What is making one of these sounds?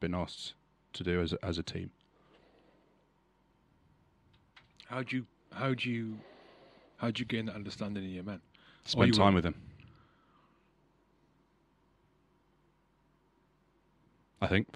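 A man speaks calmly and close into a microphone, in short phrases with pauses.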